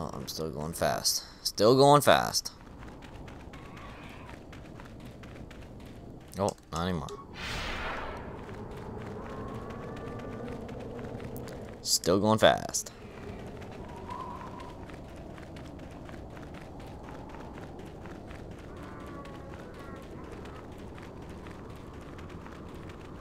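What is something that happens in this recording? Footsteps run quickly over soft sand.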